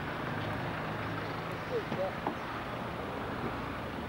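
A car door opens with a click.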